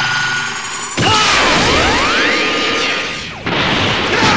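An energy blast roars and whooshes.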